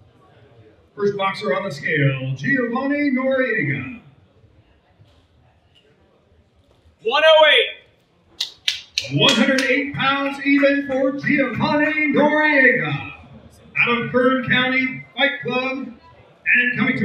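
A man announces loudly through a microphone.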